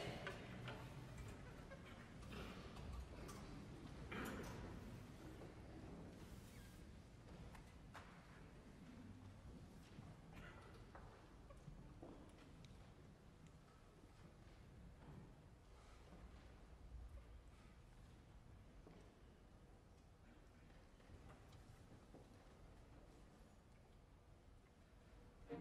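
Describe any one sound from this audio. An orchestra plays softly in a large hall.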